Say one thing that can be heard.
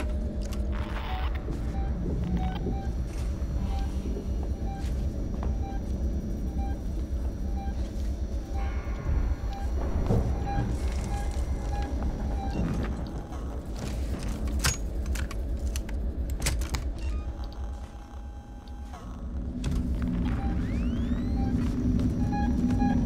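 A motion tracker beeps in a steady, repeating rhythm.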